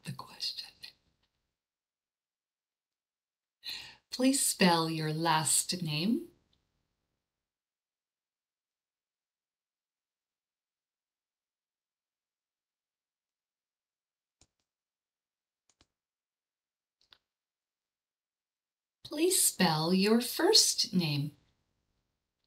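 A woman speaks slowly and clearly into a microphone, in short phrases with long pauses.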